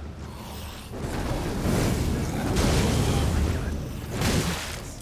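Flames roar and crackle in a burst.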